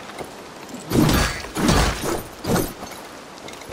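A blade slashes and strikes an animal with heavy thuds.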